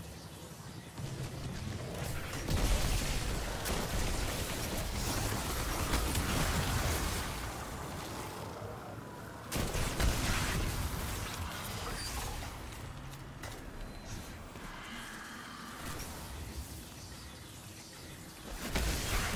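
Gunfire and blasts boom from a game.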